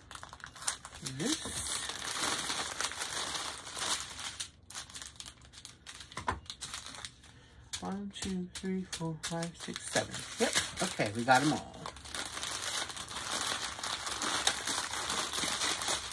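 Plastic bags crinkle and rustle as hands handle them.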